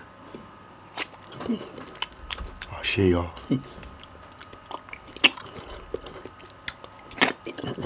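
A man chews food wetly close to a microphone.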